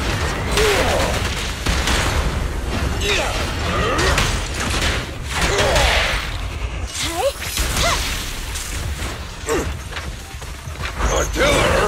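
Blows land with heavy thuds and crackling bursts.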